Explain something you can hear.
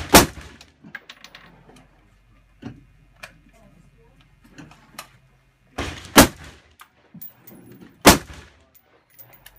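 A rifle fires loud single shots that crack and echo outdoors.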